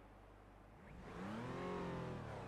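A race car engine revs up.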